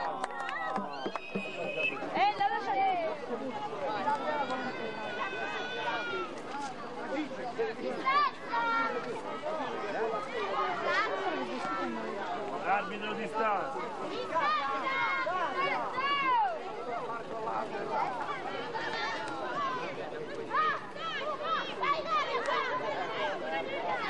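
Children and teenagers shout and chatter excitedly outdoors.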